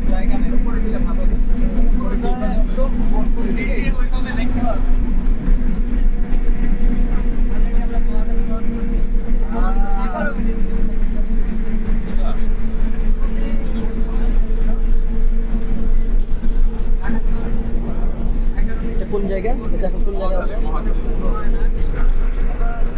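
A train hums and rumbles steadily along its track.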